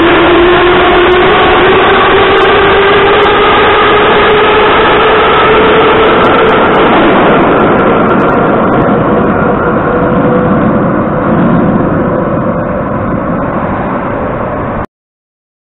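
An underground train pulls out with a loud rising whine, then rumbles away into a tunnel and fades, echoing in a large hall.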